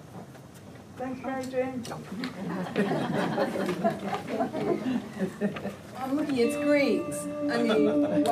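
An acoustic guitar is strummed.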